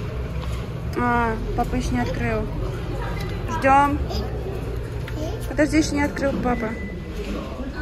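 A young child babbles and squeals nearby.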